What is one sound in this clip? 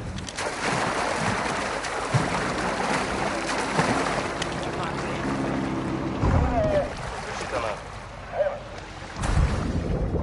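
Water splashes and sloshes as a swimmer paddles through it.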